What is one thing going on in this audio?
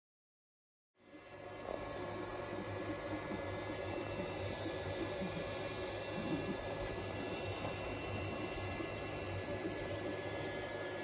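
A 3D printer's fans and motors hum steadily.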